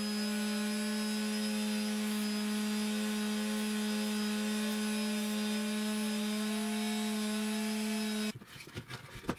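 An electric sander whines steadily as a wooden stick is pressed against its spinning disc.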